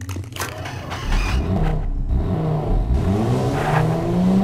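A motorbike engine starts up and revs, rising in pitch.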